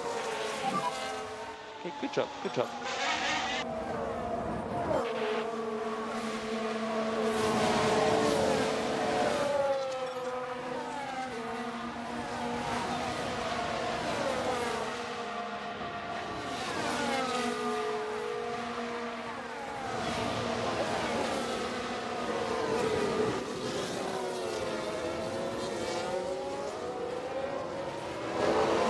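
Racing car engines scream past, their pitch rising and falling as they shift gears and pass by.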